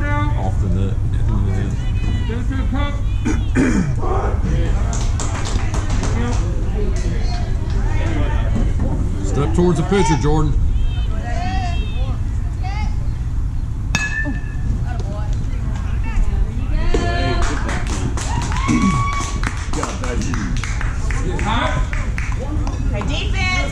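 Young players and adults shout and cheer outdoors.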